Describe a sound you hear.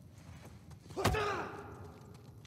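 A man punches another man with a heavy thud.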